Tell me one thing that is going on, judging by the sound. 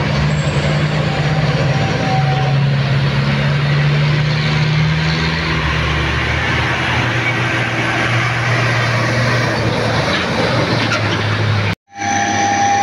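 A heavy truck engine rumbles steadily close by.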